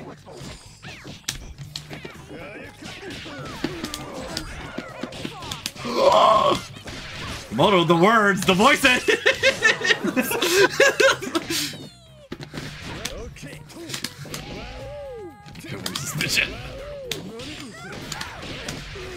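Punches and blows land in quick, sharp succession.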